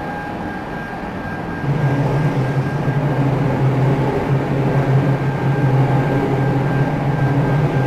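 Train wheels rumble on rails.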